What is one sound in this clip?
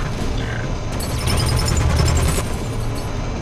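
A heavy blast booms and crackles.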